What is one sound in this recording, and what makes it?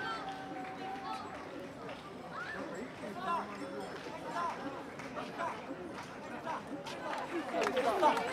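People chatter quietly on a street outdoors.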